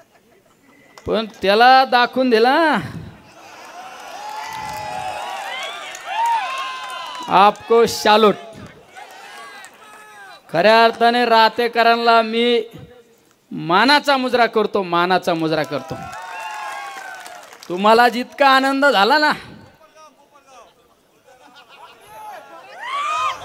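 A middle-aged man speaks forcefully into a microphone over loudspeakers, in loud bursts outdoors.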